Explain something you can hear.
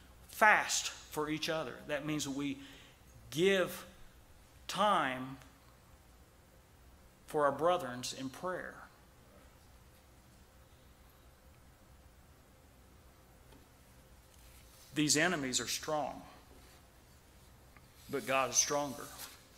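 A middle-aged man preaches forcefully into a microphone, with long pauses, in an echoing hall.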